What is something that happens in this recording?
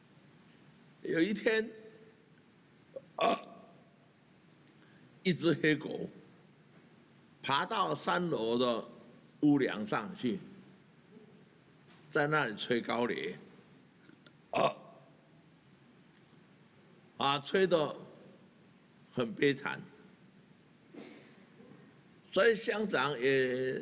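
An elderly man speaks slowly and deliberately into a microphone, with long pauses.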